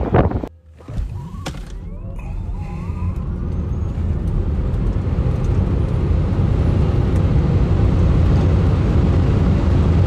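An electric car accelerates hard with a rising whine and a deep road rumble.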